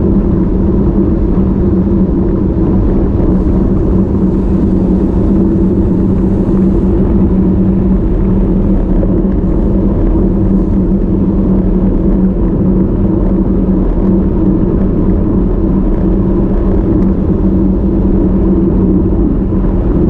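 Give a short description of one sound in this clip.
Wind buffets loudly against a moving microphone.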